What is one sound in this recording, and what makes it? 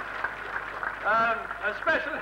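A middle-aged man speaks cheerfully into a microphone.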